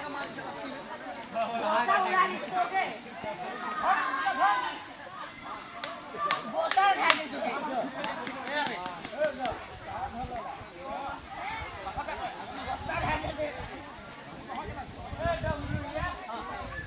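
Several men shout and call out to one another outdoors.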